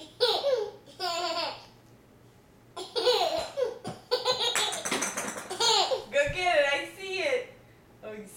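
A young woman talks playfully to a baby close by.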